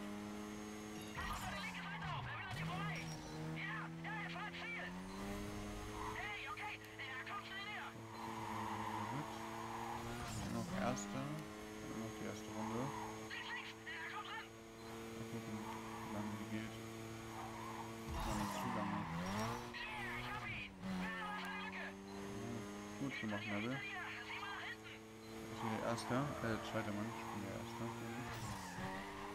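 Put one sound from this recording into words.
A sports car engine revs hard at high speed and shifts through its gears.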